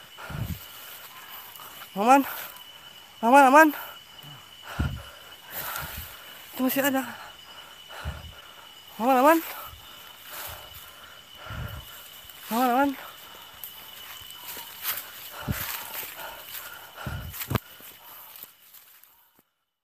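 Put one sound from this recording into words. A man crawls through dry leaves that rustle and crunch.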